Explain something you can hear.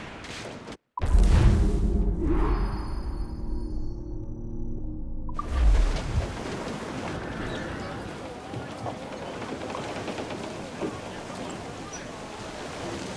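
Waves crash and splash loudly against a ship's hull.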